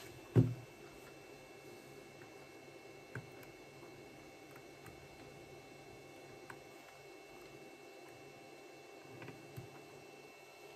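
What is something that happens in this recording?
Small objects knock and tap on a rubber mat.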